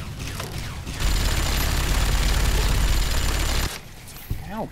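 A minigun spins up and fires a rapid, roaring burst.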